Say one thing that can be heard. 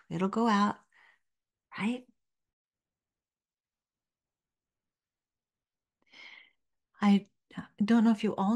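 An elderly woman speaks calmly and warmly into a close microphone, with pauses.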